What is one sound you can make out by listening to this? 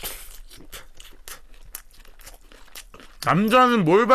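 A young man chews food noisily close to a microphone.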